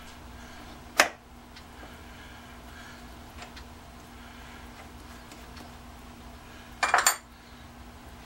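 A metal chuck key clinks against the lathe.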